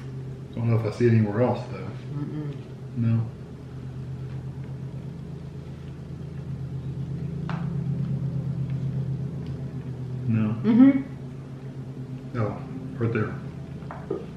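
A woman talks casually in short bursts, close by.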